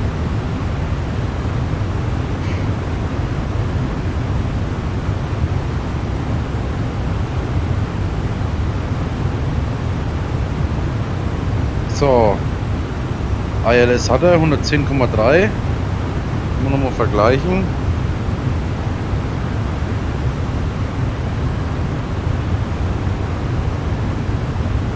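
Jet engines drone with a steady low rumble.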